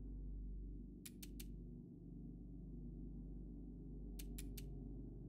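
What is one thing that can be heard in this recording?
Menu selection clicks tick in quick bursts of three.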